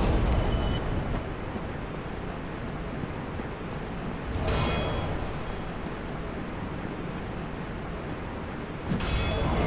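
An armoured figure's footsteps clatter on stone as the figure runs.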